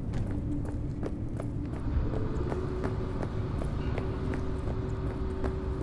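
A low, steady hum fills a large space.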